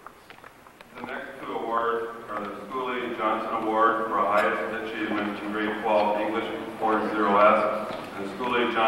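A man speaks through a microphone and loudspeaker in an echoing hall.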